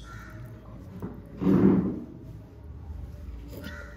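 A woman sips a hot drink with a loud slurp.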